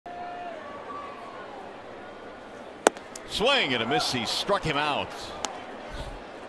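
A stadium crowd murmurs in the background.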